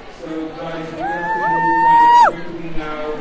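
A young woman sings a high note close by.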